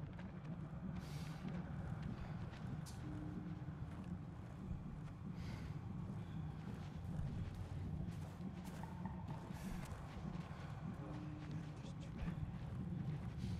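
Tall grass rustles softly as someone creeps through it.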